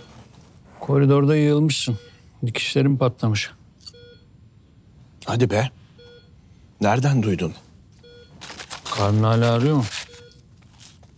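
A middle-aged man speaks loudly and with feeling, close by.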